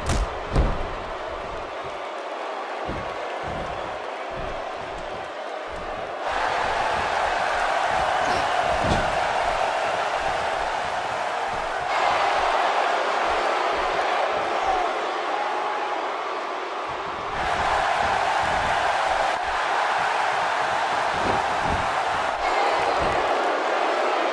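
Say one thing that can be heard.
Heavy thuds of bodies hitting a wrestling mat ring out now and then.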